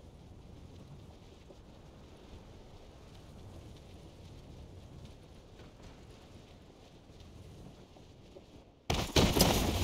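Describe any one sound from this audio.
Wind rushes steadily past a parachuting game character.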